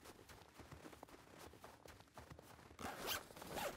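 Footsteps crunch on icy snow.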